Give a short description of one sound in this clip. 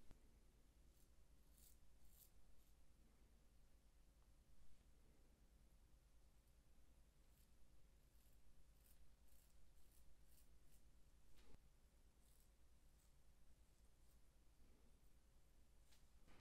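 A razor scrapes softly across stubble.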